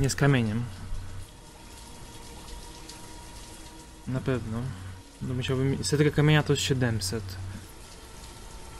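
A man talks casually and animatedly into a close microphone.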